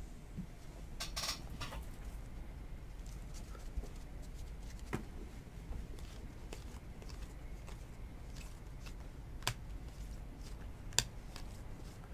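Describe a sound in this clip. Trading cards rustle and flick as hands shuffle through a stack.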